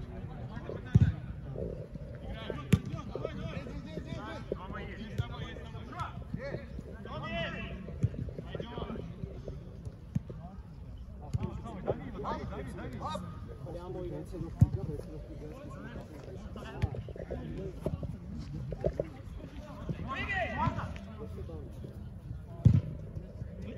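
A ball is kicked with sharp thumps outdoors.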